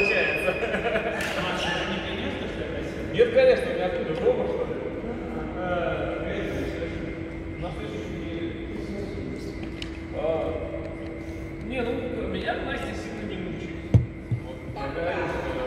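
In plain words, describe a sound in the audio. A man talks calmly and steadily, close by in an echoing hall.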